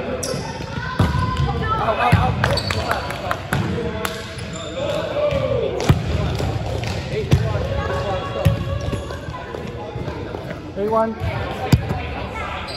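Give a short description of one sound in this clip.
A volleyball is hit with sharp slaps that echo around a large hall.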